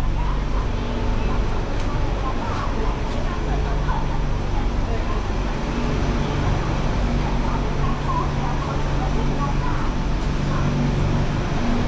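A train car rumbles and hums steadily as it rolls along.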